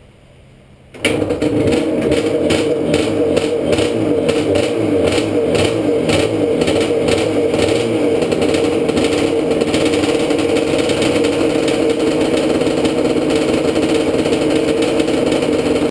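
A motorcycle engine starts suddenly and runs loudly with a steady rumble.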